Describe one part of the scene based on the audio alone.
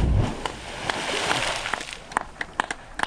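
A big splash hits the water close by.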